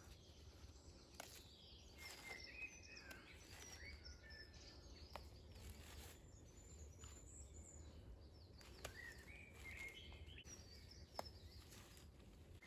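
Leaves rustle as plants are picked.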